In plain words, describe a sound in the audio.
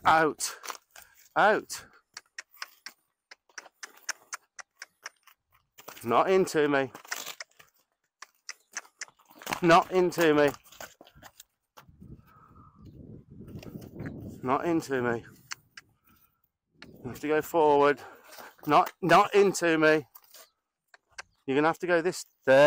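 A man talks calmly to a horse outdoors.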